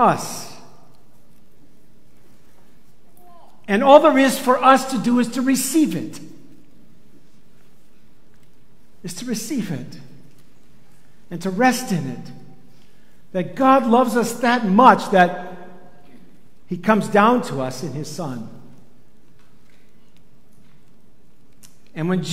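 An older man speaks calmly into a microphone in bursts, with pauses between.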